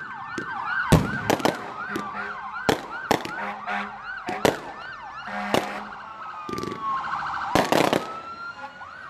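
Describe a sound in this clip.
Fireworks pop and crackle in sharp bursts.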